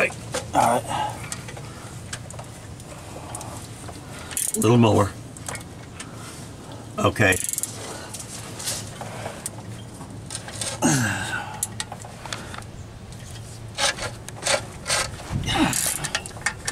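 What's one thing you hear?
A ratchet wrench clicks in short bursts.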